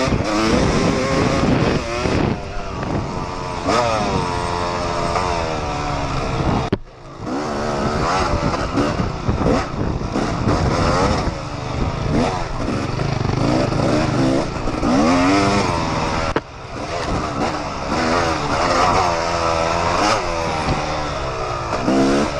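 A dirt bike engine revs up and down loudly close by.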